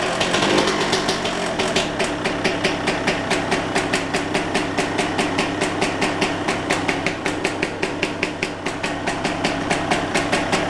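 A motorcycle engine idles close by with a rough, steady putter.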